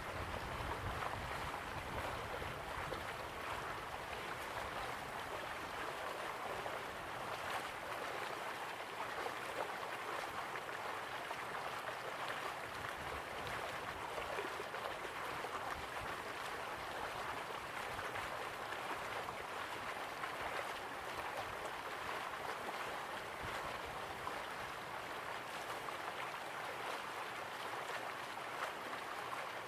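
A waterfall roars steadily.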